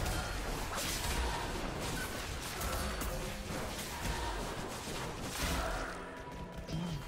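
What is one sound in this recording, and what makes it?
Game battle effects clash and chime.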